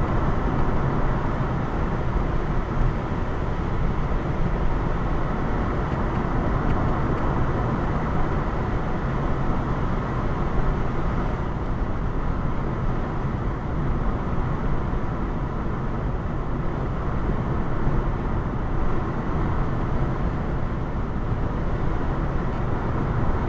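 Tyres roar steadily on a highway from inside a moving car.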